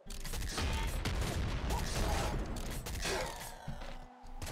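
Video game gunfire pops rapidly.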